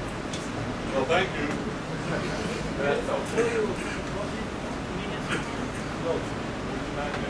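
A man speaks calmly in an echoing hall, a little way off.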